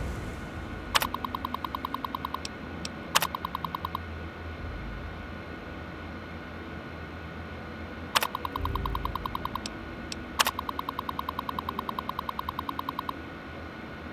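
A computer terminal beeps and chatters rapidly as text prints out.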